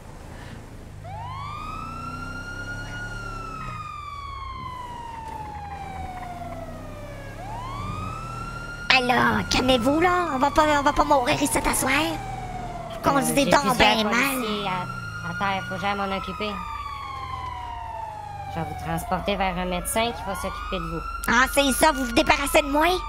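A siren wails in repeated rising and falling sweeps.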